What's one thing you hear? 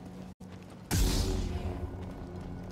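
A lightsaber ignites with a sudden whoosh.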